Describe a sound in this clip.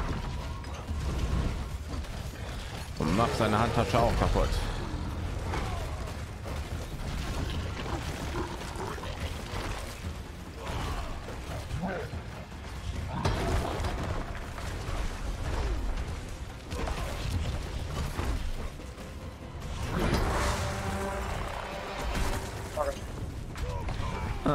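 Fiery explosions burst and roar.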